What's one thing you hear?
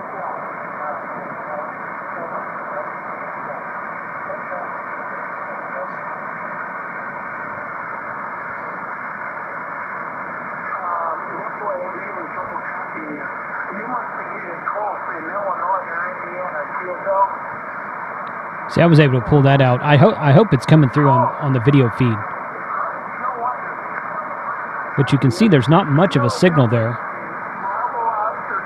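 Static hisses steadily from a radio loudspeaker.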